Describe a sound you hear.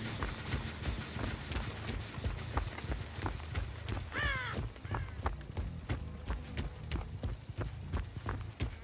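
Heavy footsteps thud steadily on soft ground.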